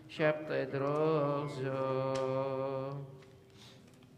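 Voices sing loudly in a large echoing hall, then stop.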